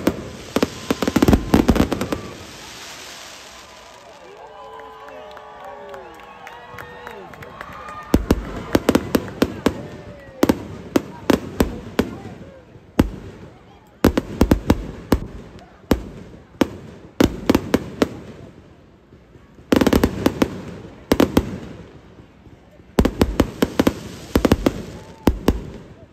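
Fireworks bang and crackle in rapid bursts.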